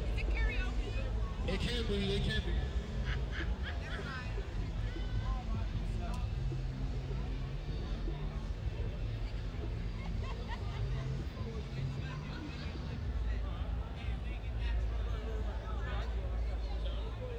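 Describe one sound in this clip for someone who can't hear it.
A crowd of young men and women chatters and calls out nearby outdoors.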